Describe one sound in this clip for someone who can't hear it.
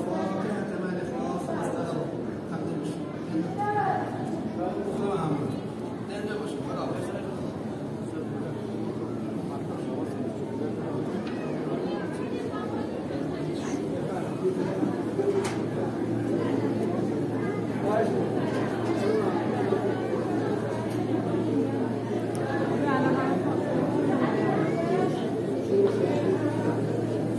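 A crowd of men and women murmur and talk in a large echoing hall.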